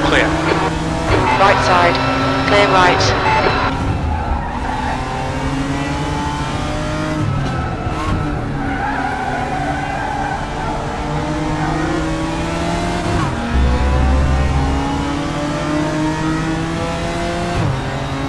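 A racing car engine roars and whines, rising and falling in pitch.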